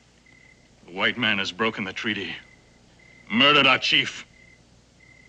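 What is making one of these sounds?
A man speaks in a low, tense voice nearby.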